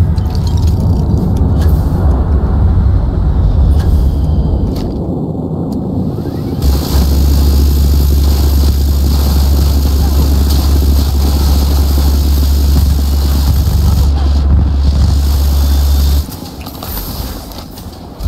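A vehicle engine rumbles low and steady.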